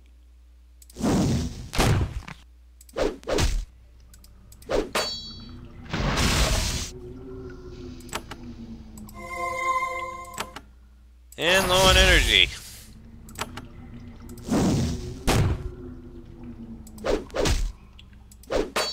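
Weapons clash and thud in a fast fight.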